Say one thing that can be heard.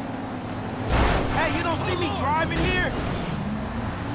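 Car tyres screech.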